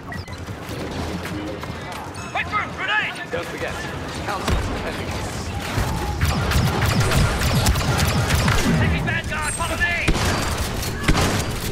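Blasters fire in rapid bursts amid a noisy battle.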